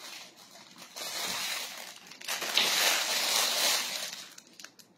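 Plastic packaging crinkles and rustles as a hand handles it.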